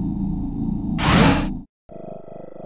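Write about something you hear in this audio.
A quick whoosh rises in pitch.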